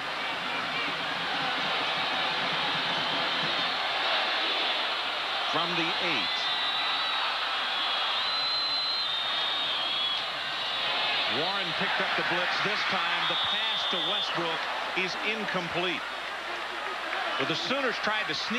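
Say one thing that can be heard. A huge crowd roars and cheers steadily in a large echoing stadium.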